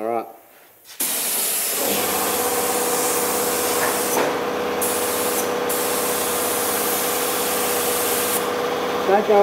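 A paint spray gun hisses steadily.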